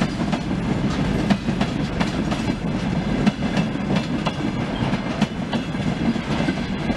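Hopper freight wagons rumble past on the tracks.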